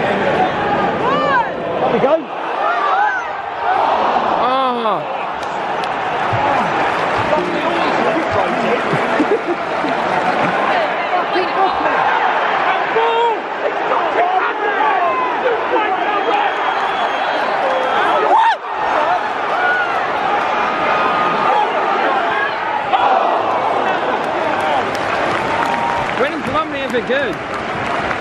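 Nearby spectators talk and shout.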